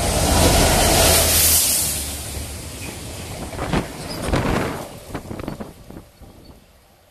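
Wagon wheels clatter over the rails.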